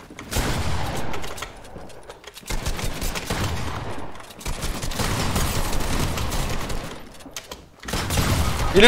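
Wooden building pieces clatter and thud in quick bursts.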